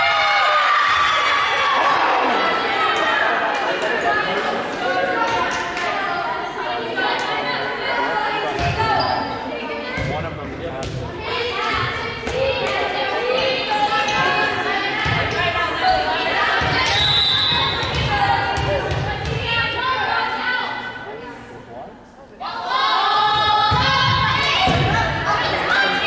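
Young women shout and cheer in a large echoing gym.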